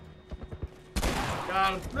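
A gunshot bangs once.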